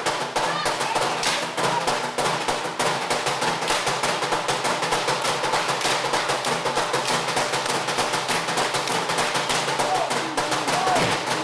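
A large group of performers claps and slaps in a fast, steady rhythm.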